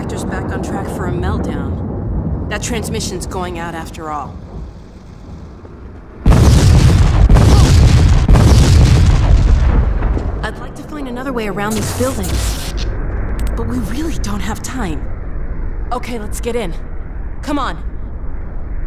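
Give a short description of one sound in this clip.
A young woman speaks calmly nearby.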